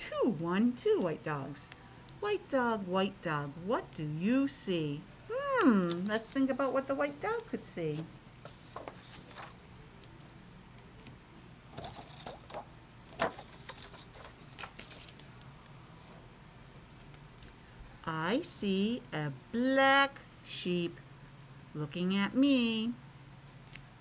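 A middle-aged woman reads aloud with animation, close to a microphone.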